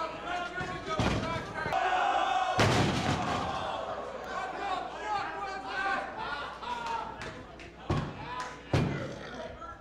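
A body slams heavily onto a wrestling ring mat.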